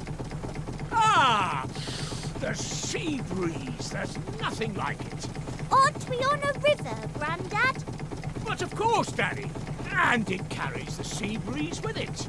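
An elderly man speaks cheerfully.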